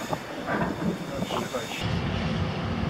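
Freight wagons rattle and clatter past close by.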